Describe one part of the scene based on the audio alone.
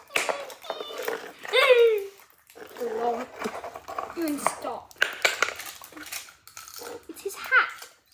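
Plastic toys clack against each other and the floor.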